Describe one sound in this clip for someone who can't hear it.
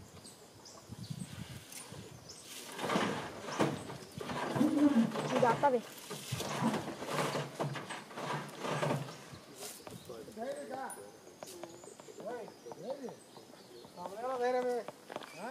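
A heavy log scrapes and thumps against the back of a truck.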